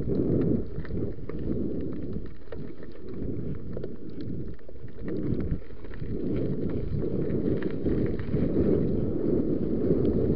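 Wind rumbles loudly against the microphone outdoors.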